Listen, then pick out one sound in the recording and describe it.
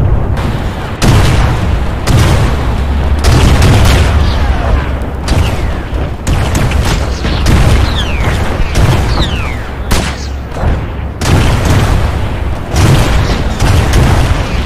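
Explosions boom and rumble, one after another.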